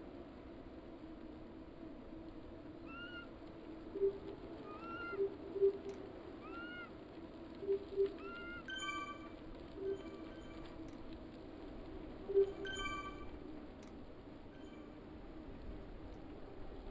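A bike trainer whirs steadily under pedalling.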